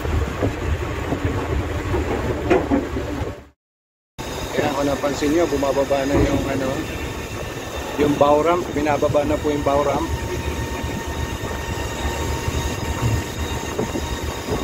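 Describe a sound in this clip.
Wind blows and buffets loudly outdoors.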